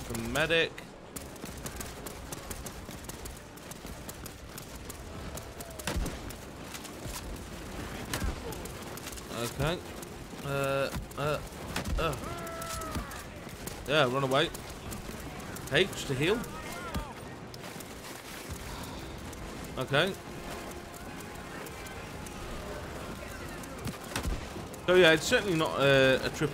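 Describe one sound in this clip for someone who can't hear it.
Gunfire and explosions rumble in the distance.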